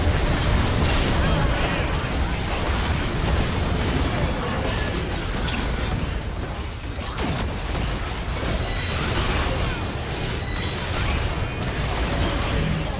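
Magic blasts crackle and boom in a fast video game battle.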